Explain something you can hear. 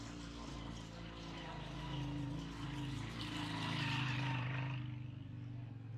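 A motorcycle engine hums as it rides past on a rough road.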